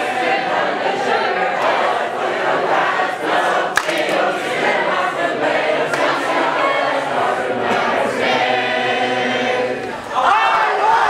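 A woman speaks with animation to a crowd in a large room.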